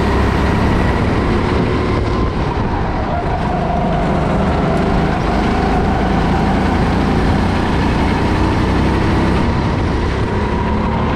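A go-kart engine buzzes loudly close by, rising and falling as it speeds around corners.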